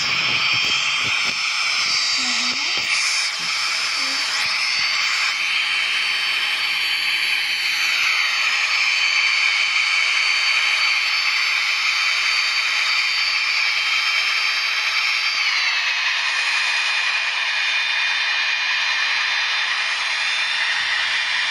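A jet engine roars steadily, its whine dropping in pitch partway through.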